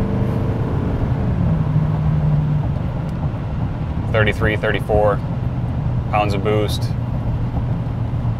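A car's road noise rumbles low and steady.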